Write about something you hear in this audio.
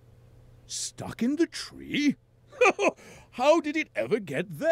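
A man speaks in a deep, cheerful voice and chuckles.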